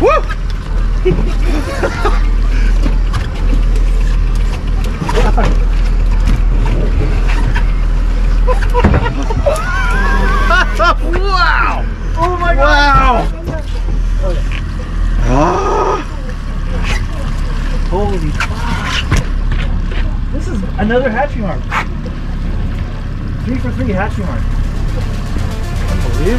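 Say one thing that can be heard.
Men talk and call out excitedly nearby.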